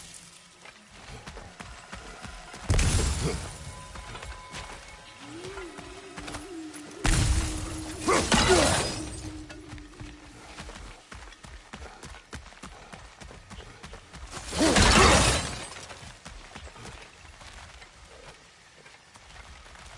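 Footsteps crunch over gravel and leaves.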